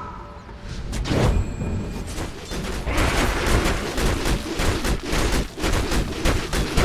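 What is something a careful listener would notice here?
Spell effects crackle and burst in a game fight.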